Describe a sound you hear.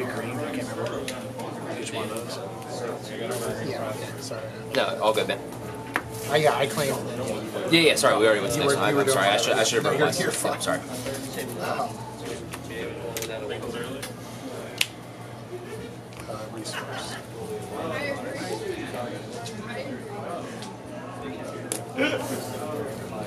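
Playing cards slide and tap on a cloth-covered table.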